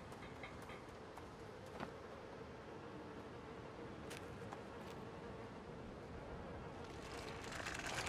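Footsteps rustle through dry leaves and twigs.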